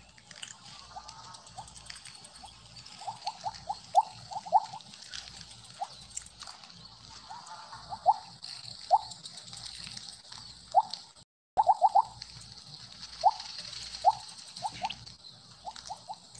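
Short bright game blips ring out again and again as pellets are collected.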